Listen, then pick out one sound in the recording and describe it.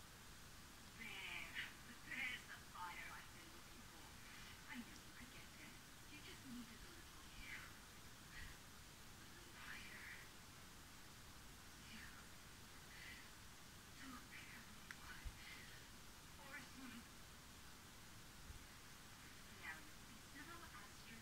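A young woman speaks calmly, heard faintly through a small loudspeaker in a room.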